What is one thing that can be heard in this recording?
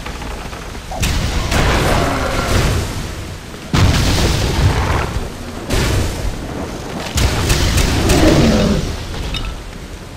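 Blasts of flame thud and crackle.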